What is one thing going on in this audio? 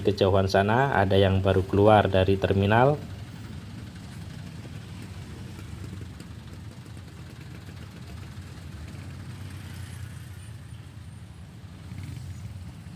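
Motorbike engines hum and pass close by.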